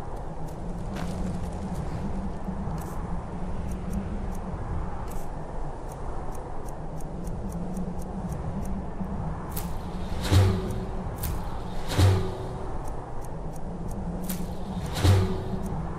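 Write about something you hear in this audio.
Soft menu clicks tick quickly as items are scrolled through.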